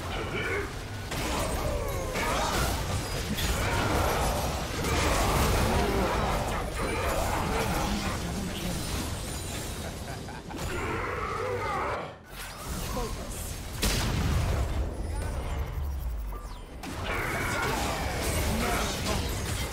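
Magic spells burst and crackle during a fast fight.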